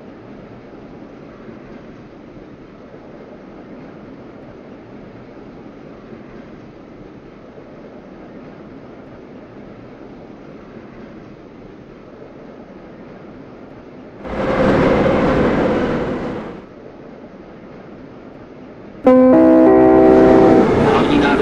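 A metro train rumbles along the track through a tunnel.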